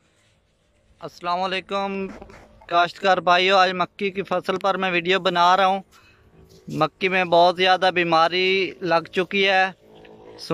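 A young man talks with animation close to the microphone, outdoors.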